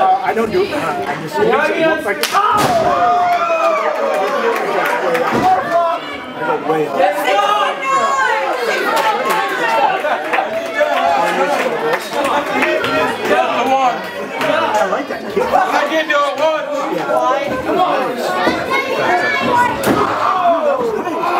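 A crowd of people shouts and cheers nearby, in a hall that echoes.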